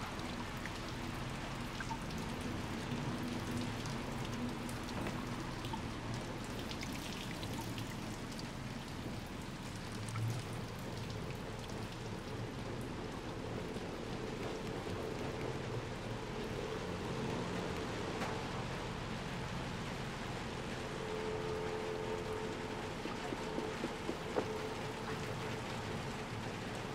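Steady rain pours down outdoors.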